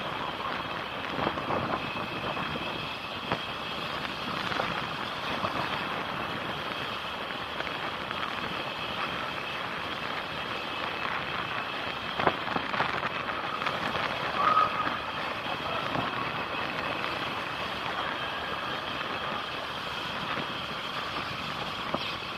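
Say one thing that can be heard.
A motorbike engine hums steadily while riding along a road.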